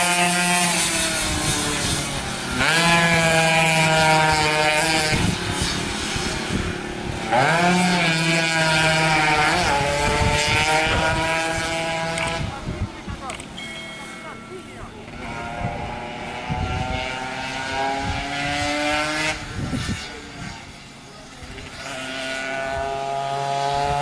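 A motorcycle engine roars and revs as the bike speeds along.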